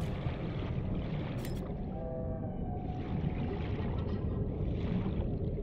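Water rumbles and burbles steadily underwater.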